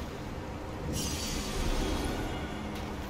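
A bright magical shimmer swells up.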